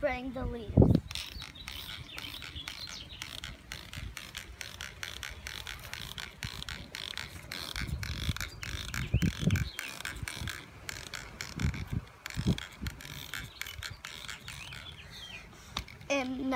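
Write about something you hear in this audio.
A spray bottle squirts in quick, short hissing bursts.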